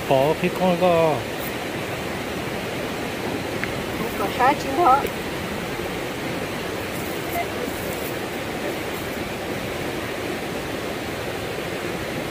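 Hands squeeze and pat wet sand in a mesh bag.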